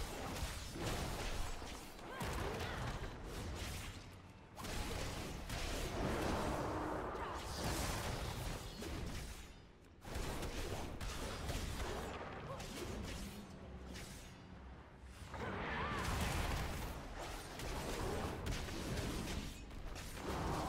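Fiery spell effects crackle and boom in a fight.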